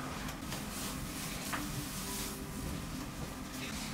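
Fabric rustles as a shirt is pulled off over the head.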